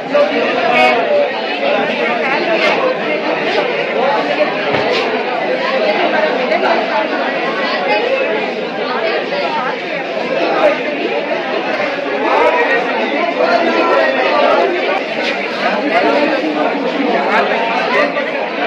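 Several young men and women murmur quietly together.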